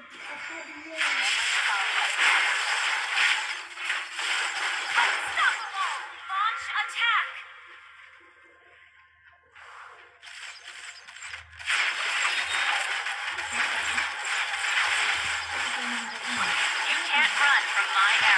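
Electronic fight sound effects clash and whoosh rapidly.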